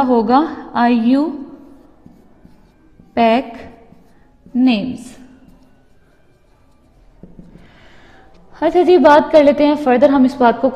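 A woman speaks clearly and steadily, as if teaching, close by.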